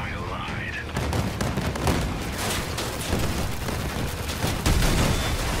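Guns fire rapidly.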